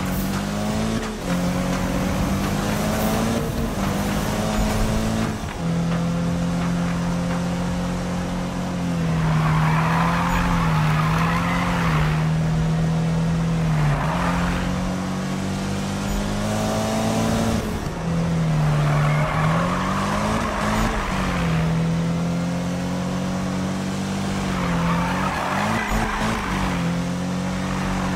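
A racing car engine roars loudly, revving up and dropping through gear changes.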